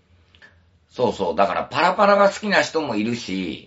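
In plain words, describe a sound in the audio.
An elderly man speaks close to the microphone.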